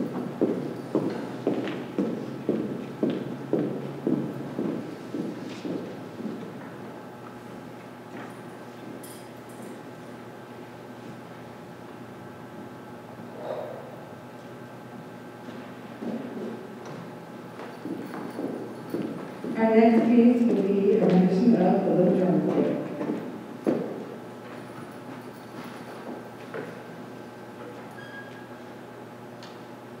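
An orchestra plays in a large echoing hall, with short repeated notes and then a brief loud swell.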